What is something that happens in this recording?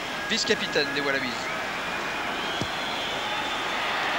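A rugby ball is kicked with a dull thud.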